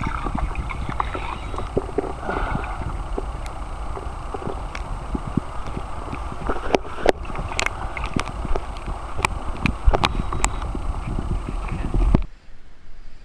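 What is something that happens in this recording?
Water rushes and gurgles loudly, heard from underwater.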